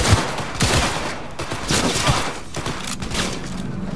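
A pistol is reloaded with metallic clicks.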